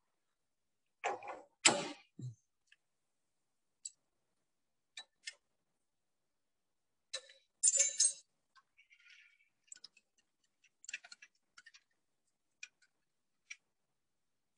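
Metal tools click and clank against a lathe.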